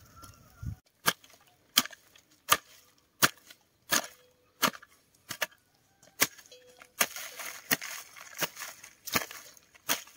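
A hoe chops into soil with regular thuds.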